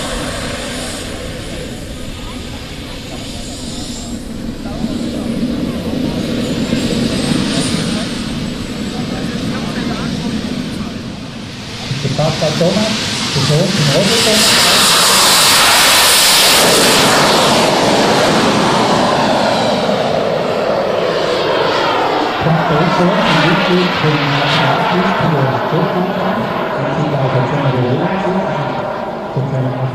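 A model jet's turbine engine whines, swells to a loud roar as it passes close by, then fades into the distance.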